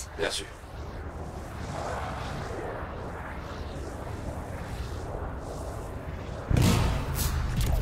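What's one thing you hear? A jet thruster hisses and rumbles steadily.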